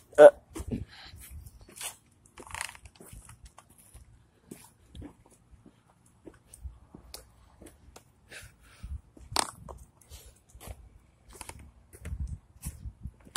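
Footsteps scuff on pavement outdoors.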